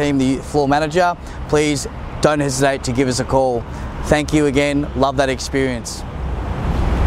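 A man speaks clearly and calmly into a nearby microphone.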